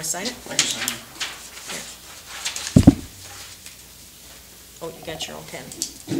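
Paper rustles as papers are handed over.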